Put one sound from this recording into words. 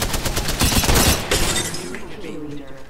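Gunfire bursts loudly and rapidly.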